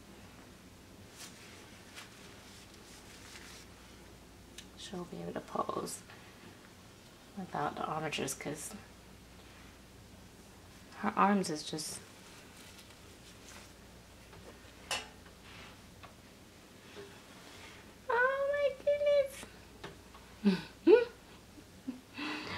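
Soft fabric rustles faintly.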